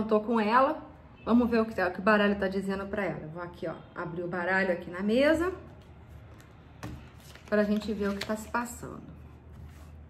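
A woman speaks calmly and close to a microphone, in short bursts with pauses.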